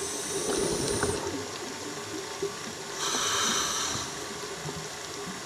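Water rushes and hisses softly, heard from underwater.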